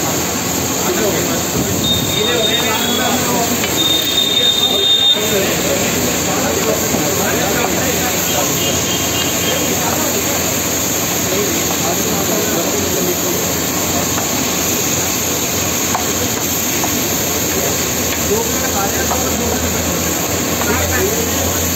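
A metal spatula scrapes and clatters against a hot griddle.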